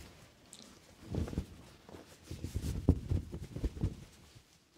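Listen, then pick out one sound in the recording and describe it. A cloth towel rustles and thumps against a microphone, close up.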